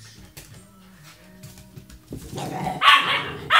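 A small dog patters softly across a carpeted floor.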